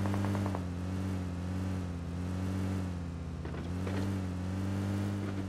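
An off-road jeep's engine drones as it drives.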